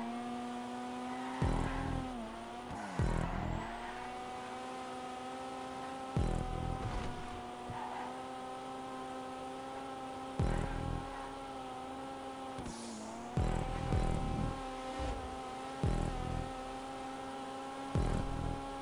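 A car engine drones steadily at high revs.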